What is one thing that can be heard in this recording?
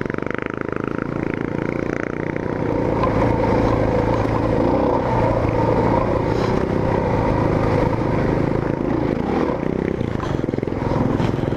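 A motorcycle engine revs and labours steadily up close.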